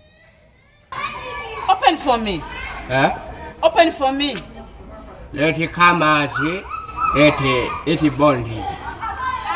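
A young man pleads loudly through a gate.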